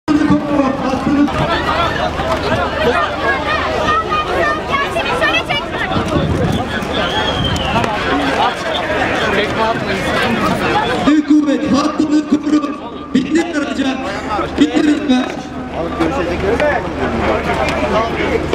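A crowd of men and women shout and scream close by in a scuffle.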